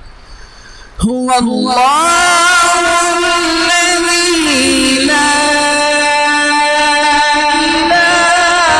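A man sings loudly into a microphone, heard through loudspeakers.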